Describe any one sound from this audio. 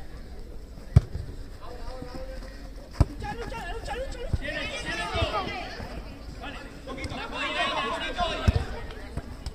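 A ball is kicked with a thump.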